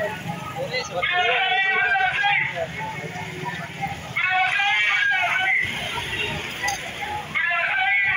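A crowd of men and women chants slogans loudly outdoors.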